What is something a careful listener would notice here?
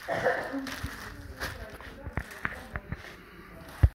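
Cardboard boxes scrape and thump.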